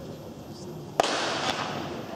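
A starting pistol fires once, sharp and loud.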